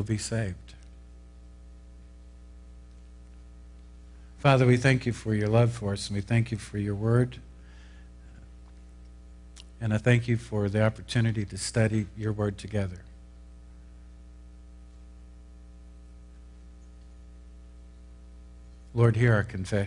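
An older man speaks slowly and calmly through a microphone, pausing between phrases, in a reverberant hall.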